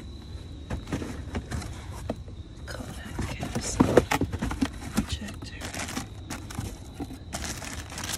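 A cardboard box scrapes and thumps as it is handled.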